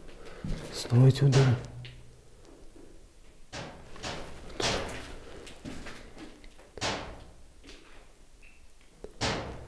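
Footsteps crunch on loose debris.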